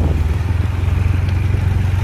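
A truck engine rumbles along the road.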